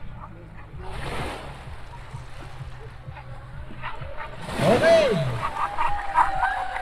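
A whale blows out a loud, breathy spout of air and spray across the water.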